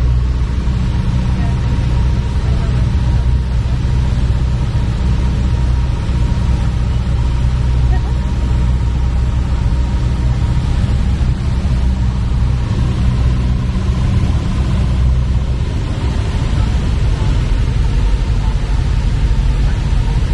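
A small plane's propeller engine drones loudly and steadily from inside the cockpit.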